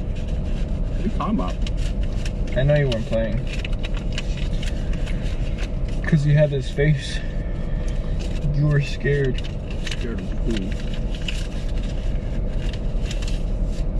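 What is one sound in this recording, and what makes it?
Paper money rustles and crinkles as it is counted.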